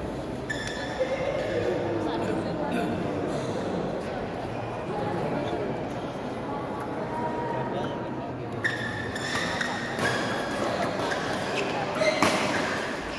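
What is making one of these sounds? Shuttlecocks are struck with sharp racket smacks in a large echoing hall.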